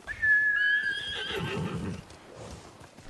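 A horse whinnies loudly nearby.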